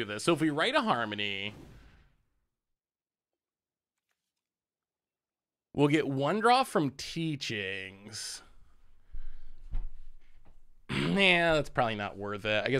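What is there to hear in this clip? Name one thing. A man talks with animation, close to a microphone, in short bursts.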